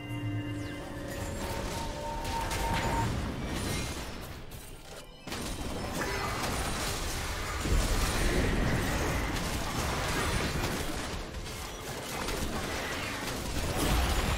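Video game fighting sounds of spells blasting and weapons clashing come quickly one after another.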